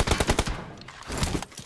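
An assault rifle fires in a rapid burst.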